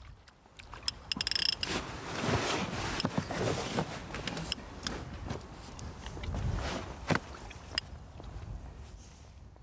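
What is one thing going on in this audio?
A fishing reel whirs and clicks as it is wound in.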